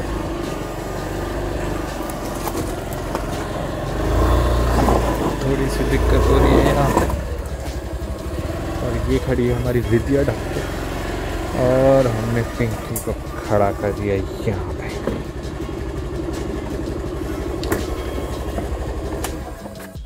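A scooter engine idles with a steady low hum.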